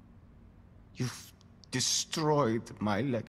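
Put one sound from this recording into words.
A man speaks in a low, menacing voice.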